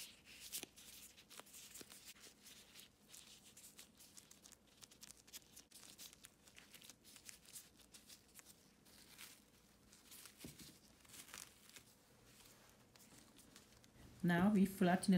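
Plastic crinkles softly.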